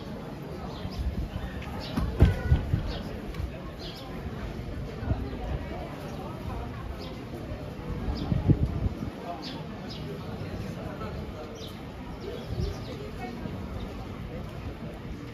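Footsteps tap on paving nearby.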